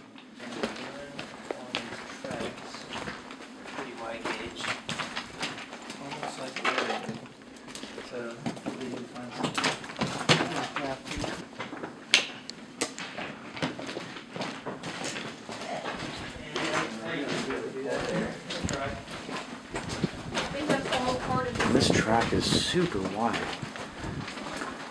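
Footsteps crunch and scrape over loose rocks.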